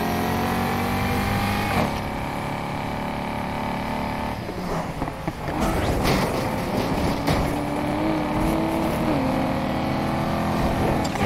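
A race car engine roars at high speed, shifting gears with sudden drops in pitch.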